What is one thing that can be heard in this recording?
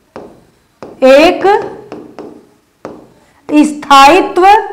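A young woman speaks clearly into a close microphone.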